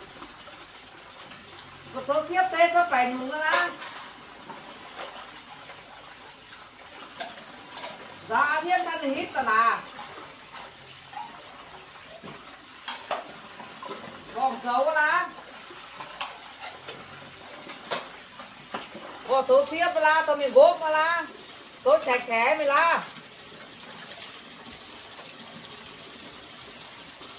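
Dishes clink as someone washes them.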